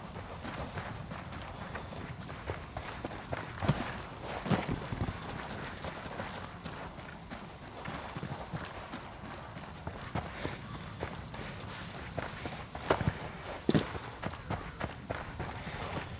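Footsteps tread over dirt and grass outdoors.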